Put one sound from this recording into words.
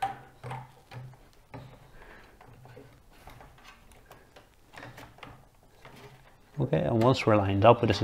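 A plastic power connector clicks into a socket.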